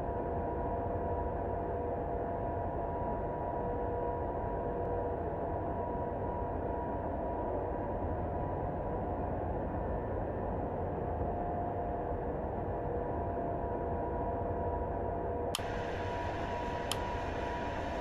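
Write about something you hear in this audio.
Jet engines roar with a steady low rumble.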